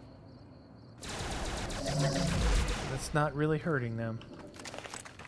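An energy weapon fires with a loud, crackling electric burst.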